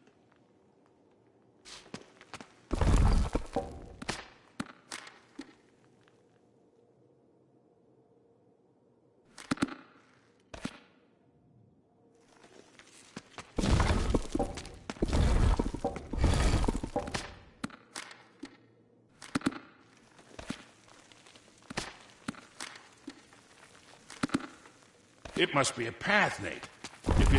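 Footsteps walk on a stone floor.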